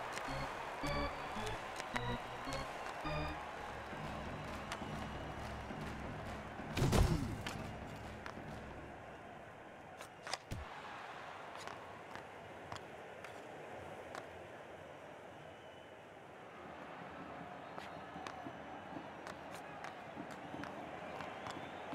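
Hockey sticks clack sharply against a puck on ice.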